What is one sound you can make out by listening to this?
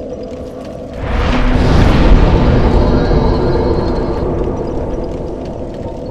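A bonfire flares up with a roaring whoosh of flames.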